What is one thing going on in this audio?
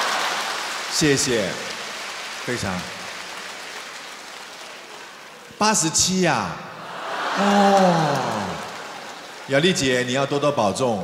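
A middle-aged man sings with feeling into a microphone.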